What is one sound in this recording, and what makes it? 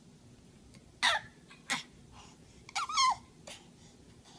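A baby babbles softly.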